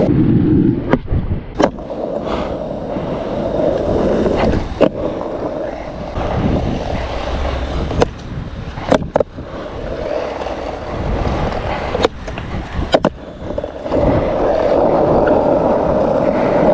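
Skateboard wheels roll and rumble over rough asphalt.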